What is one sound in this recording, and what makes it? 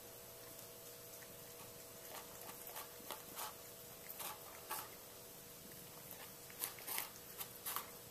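A cat licks and nibbles a treat on a hard floor.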